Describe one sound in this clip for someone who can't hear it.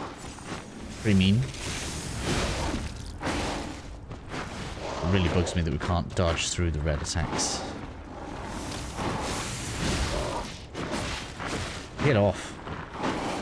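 A large monster growls and roars.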